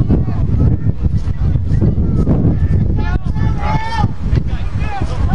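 A crowd of spectators cheers and shouts across an open field.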